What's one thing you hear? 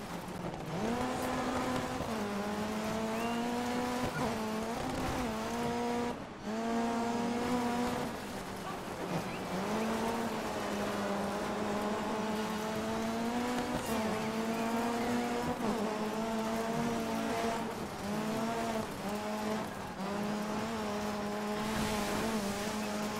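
Tyres skid and scrabble on loose gravel.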